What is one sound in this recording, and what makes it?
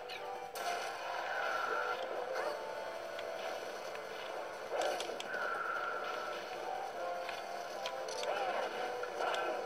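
Plastic controller buttons click quickly.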